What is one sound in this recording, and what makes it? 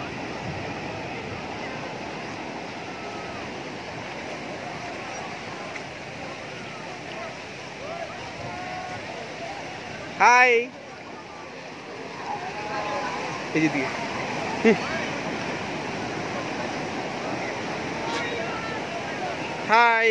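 People talk and shout in the distance, outdoors in open air.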